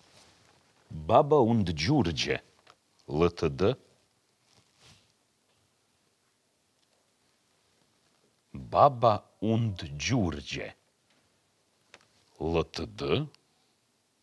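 A man speaks calmly in short bursts, close to a microphone.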